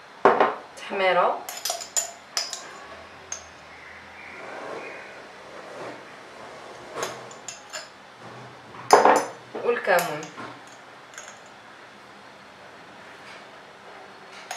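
A spoon clinks against a small glass jar.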